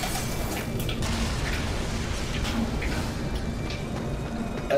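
An explosion booms and rumbles.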